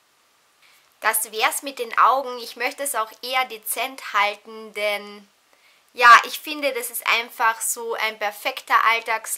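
A young woman talks to the listener close to a microphone, with animation.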